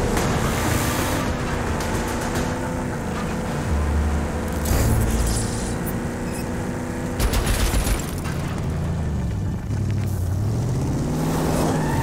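A car engine roars steadily, rising and falling in pitch as it speeds along.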